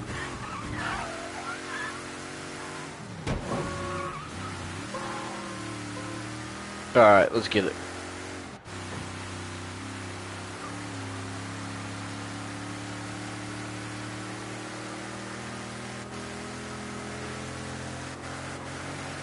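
A car engine hums steadily while driving along a road.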